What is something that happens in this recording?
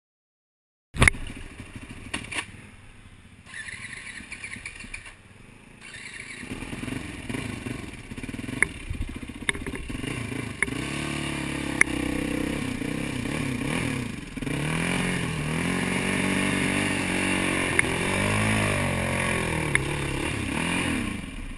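Tyres rattle over a rough muddy trail.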